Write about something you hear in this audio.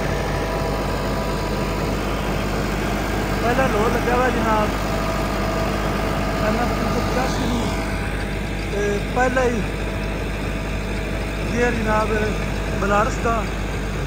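A rotary tiller churns through soil.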